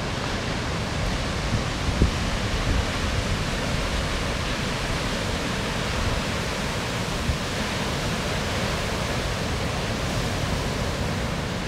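Ocean waves break and wash in with a steady roar.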